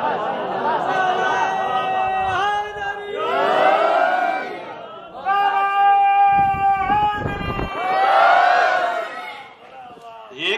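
A man chants in a sustained, melodic voice through a microphone.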